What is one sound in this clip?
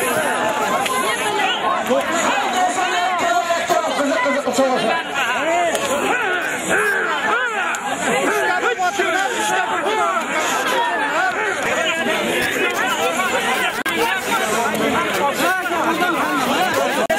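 A crowd of men shouts and yells nearby.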